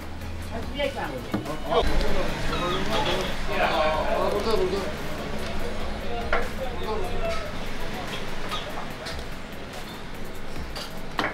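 A wooden spoon scrapes and clanks against a metal pot.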